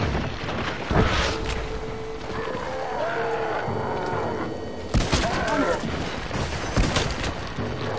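Gunshots crack loudly, one at a time.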